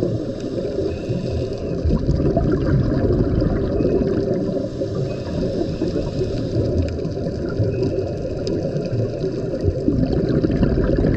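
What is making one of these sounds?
Water rumbles and swishes in a low, muffled roar, heard from underwater.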